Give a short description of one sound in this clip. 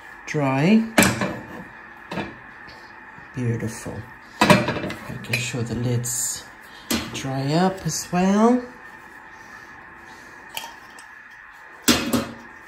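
A glass jar knocks against a hard surface.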